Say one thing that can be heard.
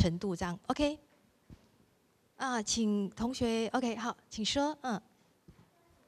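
A young woman speaks loudly and with animation through a microphone.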